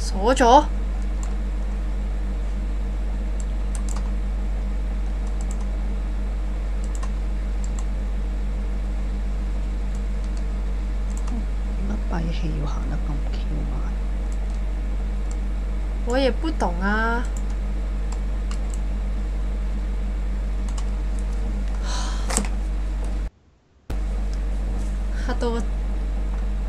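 A young woman speaks briefly and softly into a microphone.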